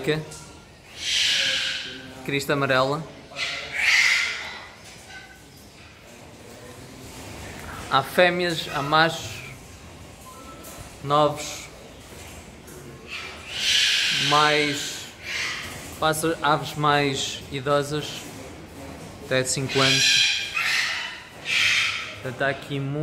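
A cockatoo screeches loudly in short, harsh bursts.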